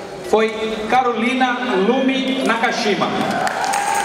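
A man announces through a loudspeaker in a large hall.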